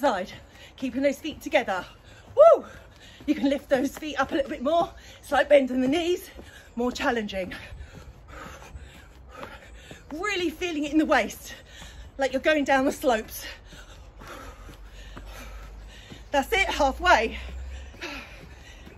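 A woman speaks with energy into a close microphone.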